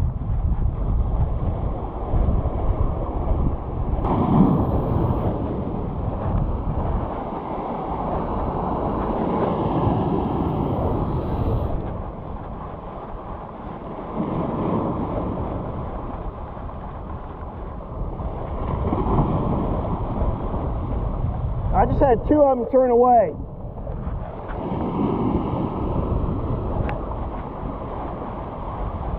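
Waves crash and wash over rocks close by.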